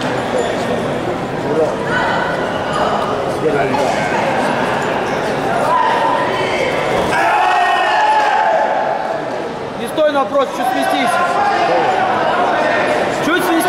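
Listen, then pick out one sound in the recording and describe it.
A man referees, shouting commands loudly.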